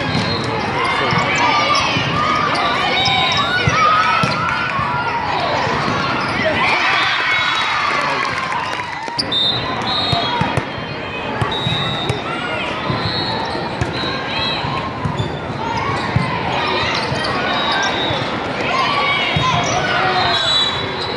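A crowd of people chatters and cheers, echoing in a large hall.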